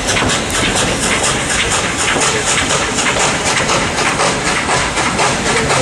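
Train wheels clatter steadily on the rails close by.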